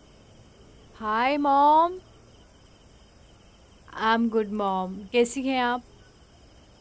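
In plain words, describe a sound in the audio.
A young woman speaks cheerfully into a phone close by.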